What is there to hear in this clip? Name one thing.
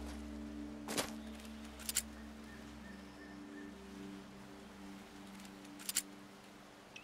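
A pistol clicks metallically as it is drawn and handled.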